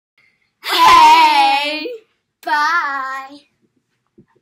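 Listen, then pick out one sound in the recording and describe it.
Two young girls sing out loudly together, close by, in two long drawn-out notes.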